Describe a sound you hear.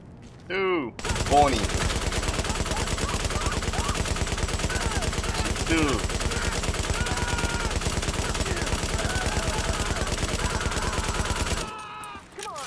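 A rifle fires in rapid automatic bursts.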